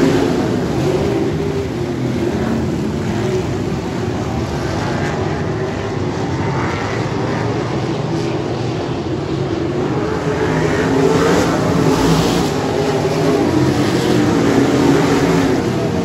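A pack of midget race cars roars at full throttle around a dirt oval outdoors.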